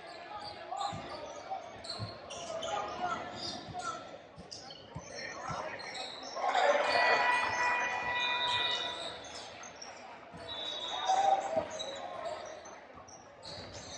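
Players and spectators call out and chatter in the echoing hall.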